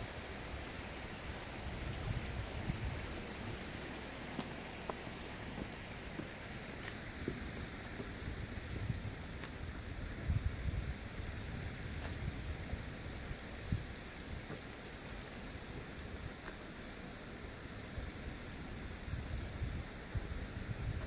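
Wind gusts outdoors, rumbling in bursts.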